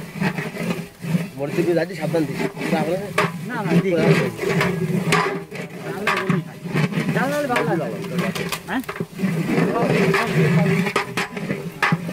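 A ladle scrapes and knocks against a metal pot.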